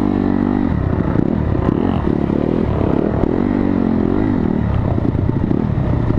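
A dirt bike engine revs loudly up close, rising and falling in pitch.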